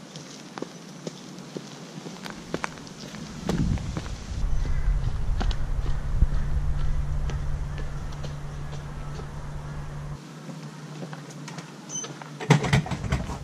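A loaded wheelbarrow rolls and rumbles over hard ground.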